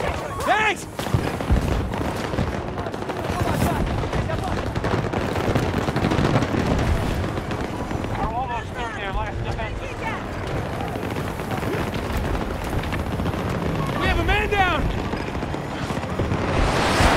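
Footsteps run across a hard rooftop.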